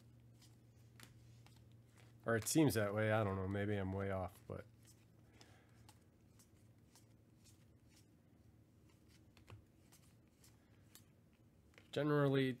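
Trading cards slide and flick softly against each other.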